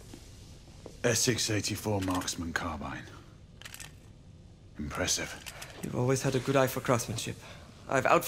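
A man with a deep voice speaks calmly, close by.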